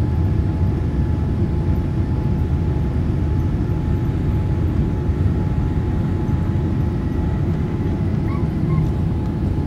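An airliner's wheels rumble over the runway.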